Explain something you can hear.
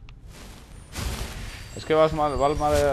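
A magical burst whooshes loudly.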